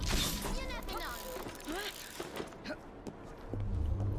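Hands and feet thud and scrape on stone while climbing.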